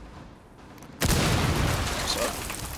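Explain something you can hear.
A loud explosion blasts through a wall.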